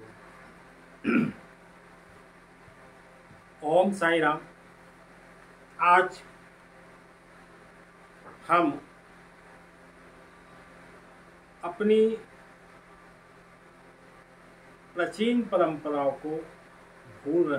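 An older man speaks slowly and calmly close to a microphone, in short phrases with long pauses.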